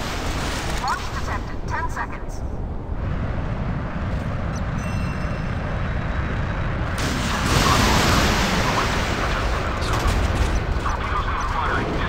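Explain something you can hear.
A jet engine roars.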